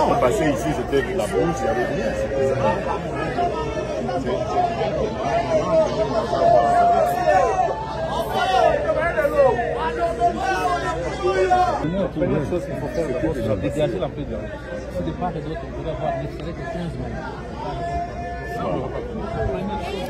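A crowd of men and women talks loudly all at once outdoors.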